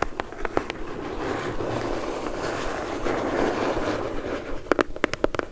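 Fingernails scratch and rub across cardboard close up.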